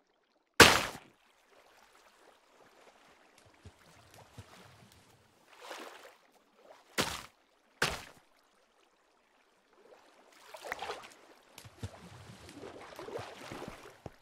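Water splashes and bubbles in a video game as a character swims.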